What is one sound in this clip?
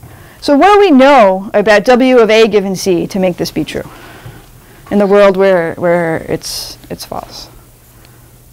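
A young woman speaks clearly and steadily.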